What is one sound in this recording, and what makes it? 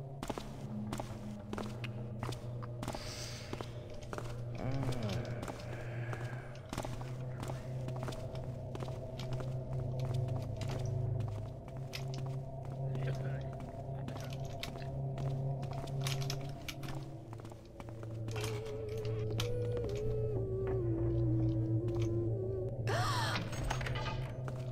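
Footsteps tread on stone paving.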